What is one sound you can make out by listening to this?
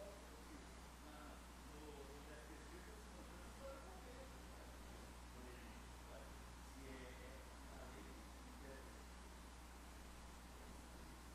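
A man speaks calmly over a microphone in a large, echoing hall.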